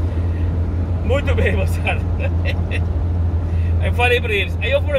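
A man talks and sings along inside a moving car.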